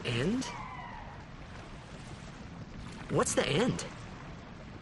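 A young man speaks calmly and questioningly, close by.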